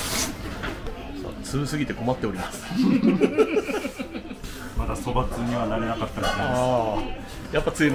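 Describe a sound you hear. A young man laughs and talks with animation close by.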